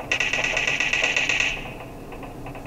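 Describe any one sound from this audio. A game's sound effects play from a phone speaker.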